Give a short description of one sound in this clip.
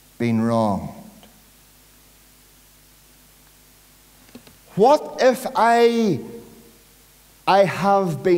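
A man preaches loudly and passionately into a microphone, pausing between phrases, in an echoing hall.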